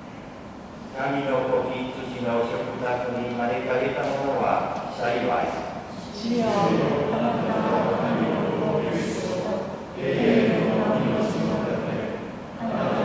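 An older man chants slowly through a microphone in an echoing hall.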